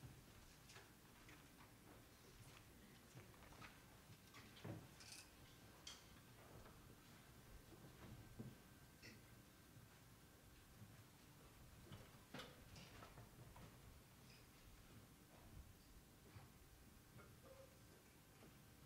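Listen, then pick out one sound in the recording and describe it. Musicians shift in their seats and handle their instruments, with scattered soft clicks and knocks in a large room.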